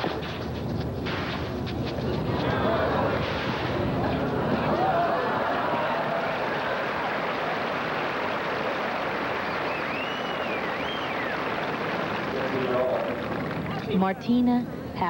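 A large crowd applauds and cheers loudly.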